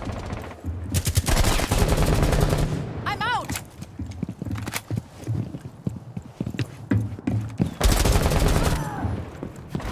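Rapid gunfire bursts out loudly at close range.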